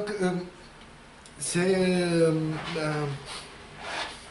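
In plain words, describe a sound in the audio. A middle-aged man speaks calmly in short bursts with pauses.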